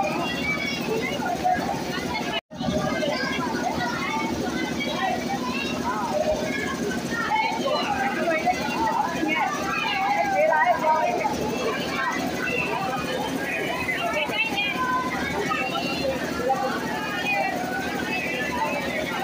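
A crowd of women chatter and call out all around, close by.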